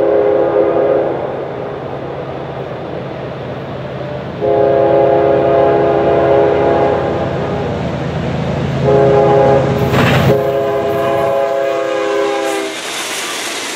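A train horn blasts loudly several times as a train approaches.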